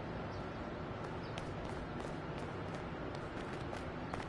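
Footsteps tap lightly on pavement.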